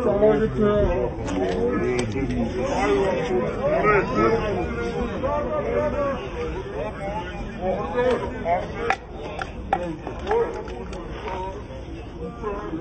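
Several men shout and talk excitedly over one another nearby, outdoors.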